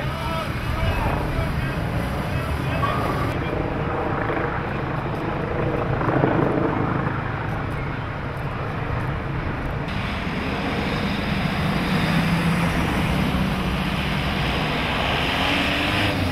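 Wind blusters steadily outdoors.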